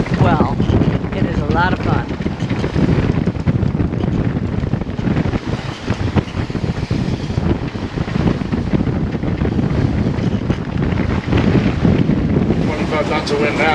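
Waves rush and splash against a sailing boat's hull.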